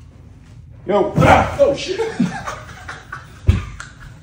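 A man laughs loudly and shrieks nearby.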